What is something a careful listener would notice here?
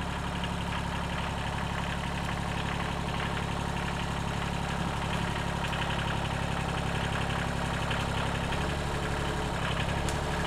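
A tractor drives slowly closer over rough ground.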